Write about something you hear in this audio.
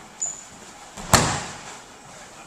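A body thuds heavily onto a mat.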